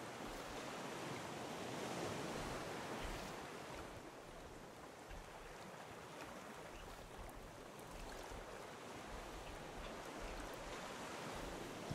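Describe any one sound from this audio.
Ocean waves wash steadily.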